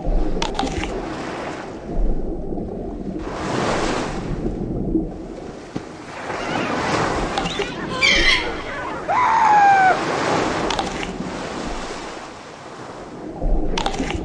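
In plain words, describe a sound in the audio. Water splashes loudly as a shark breaks the surface.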